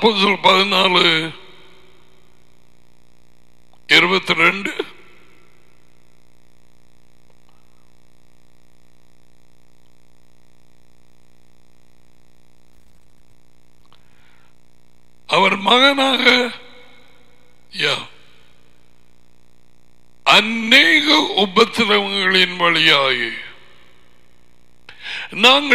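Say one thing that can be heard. An elderly man speaks in short bursts into a headset microphone, with long pauses in between.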